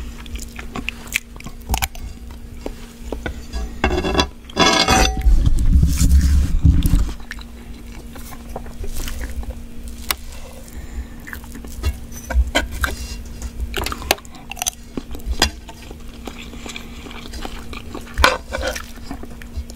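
A man chews food loudly and wetly close to a microphone.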